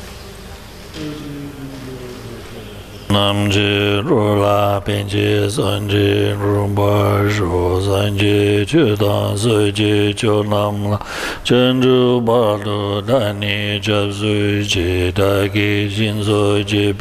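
An elderly man chants slowly in a deep, steady voice through a microphone.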